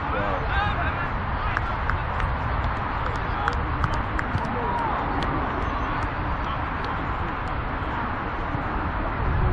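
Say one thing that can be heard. Wind buffets the microphone outdoors with a steady low rumble.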